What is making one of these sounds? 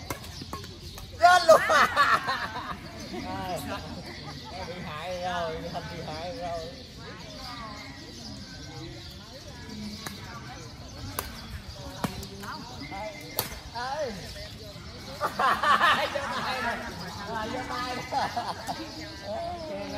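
Badminton rackets hit a shuttlecock.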